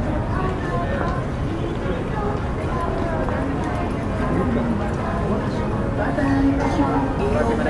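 Many people talk and murmur around a busy street.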